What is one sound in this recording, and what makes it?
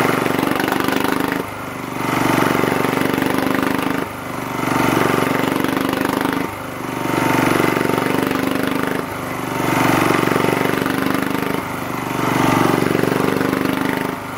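A petrol generator engine runs close by, its pitch dipping and surging every few seconds.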